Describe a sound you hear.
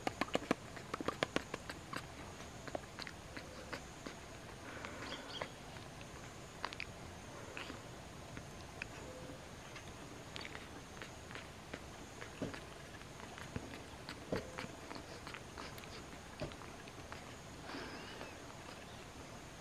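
A young monkey makes soft smacking sounds up close.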